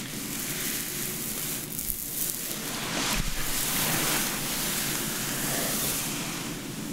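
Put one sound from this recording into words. Hands rustle and run through hair close up.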